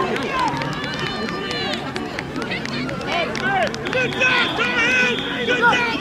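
A man shouts and cheers loudly outdoors.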